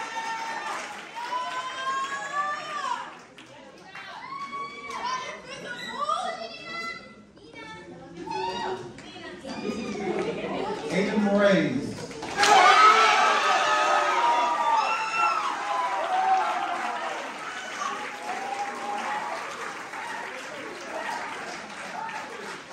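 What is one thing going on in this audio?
A crowd of young people chatter and call out in a large echoing hall.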